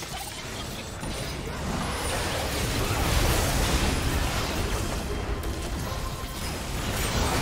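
Magic blasts and impacts crackle and boom during a fight in a video game.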